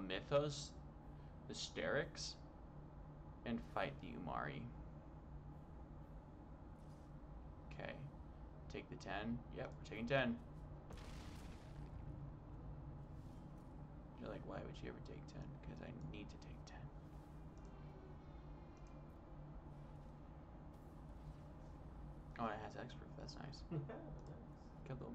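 A young man talks casually into a headset microphone, in short bursts.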